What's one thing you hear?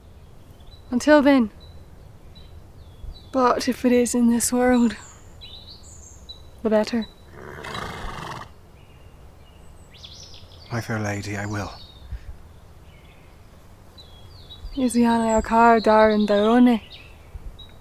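A young woman speaks earnestly, close by.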